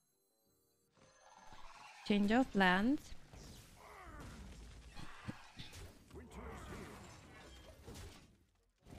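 Game cards whoosh and clash with magical effects.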